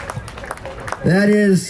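A man begins speaking through a loudspeaker microphone.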